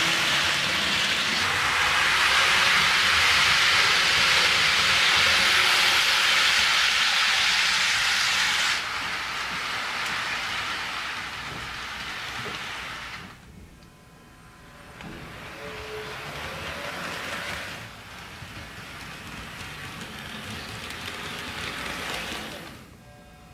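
Model train wheels clatter and rumble along the track.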